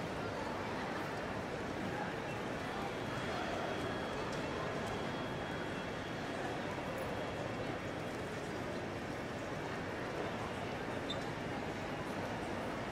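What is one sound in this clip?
A crowd murmurs and footsteps echo in a large, hall-like space.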